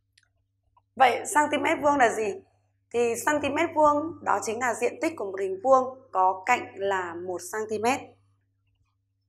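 A woman speaks clearly and calmly into a close microphone.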